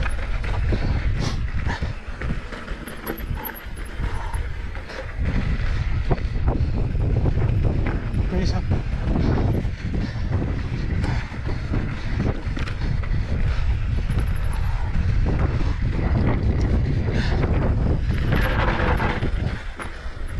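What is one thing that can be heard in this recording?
Wind buffets loudly past a moving rider.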